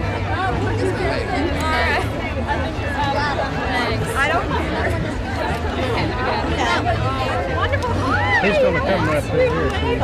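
A crowd of men and women chatter all around, close by, outdoors.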